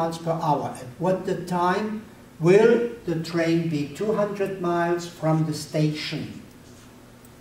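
An elderly man speaks calmly and explains, close by.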